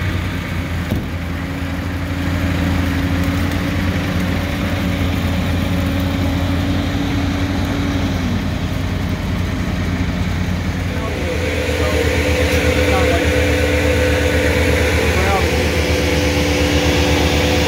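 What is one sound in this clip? A chainsaw engine runs and revs nearby.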